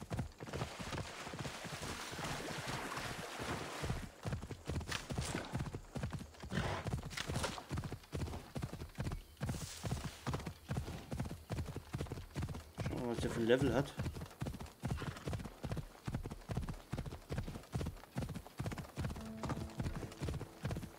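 Hooves gallop steadily over the ground.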